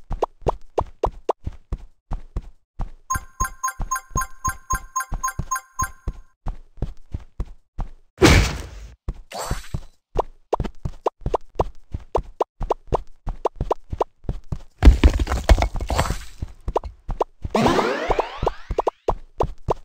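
Quick, steady footsteps patter along a path.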